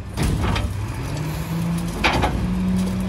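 Hydraulics whine as a garbage truck's lift raises a bin.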